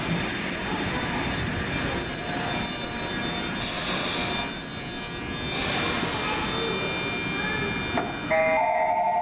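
A train rumbles slowly into a station.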